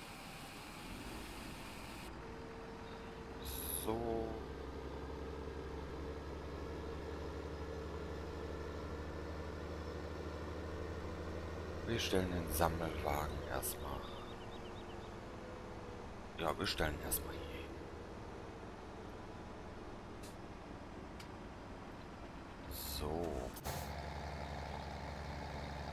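A tractor engine hums steadily at a low idle.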